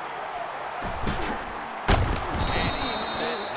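Football players collide hard in a tackle.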